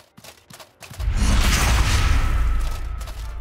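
A fiery blast roars loudly.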